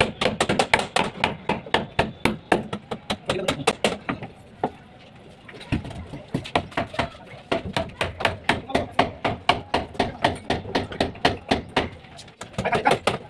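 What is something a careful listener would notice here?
A hammer taps rapidly and steadily on a metal chisel against concrete, with short pauses.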